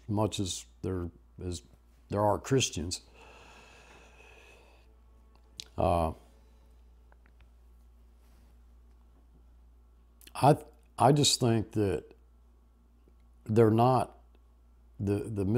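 An older man speaks calmly and slowly, close to a microphone, with long pauses.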